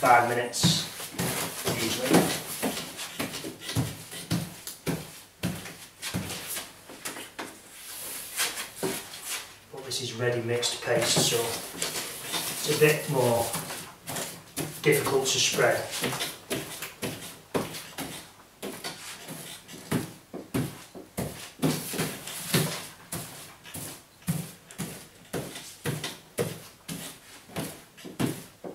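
A pasting brush swishes and dabs across wallpaper.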